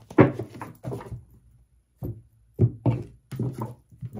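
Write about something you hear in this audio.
Cards slap and slide on a table.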